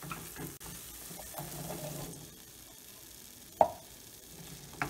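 Chickpeas tumble into a pan with a soft thud.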